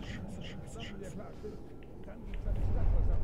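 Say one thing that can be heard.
A young man speaks quietly into a close microphone.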